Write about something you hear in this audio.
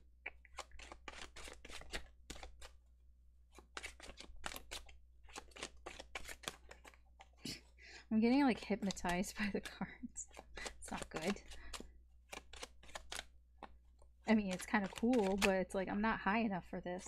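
Playing cards riffle and shuffle with quick crisp flutters.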